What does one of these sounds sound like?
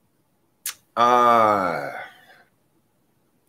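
A middle-aged man lets out a long, falling groan close by.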